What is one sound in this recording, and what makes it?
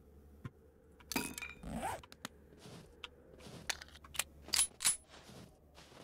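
Pistol shots crack one after another.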